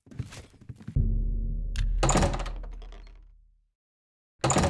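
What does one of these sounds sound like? A door unlocks and creaks open.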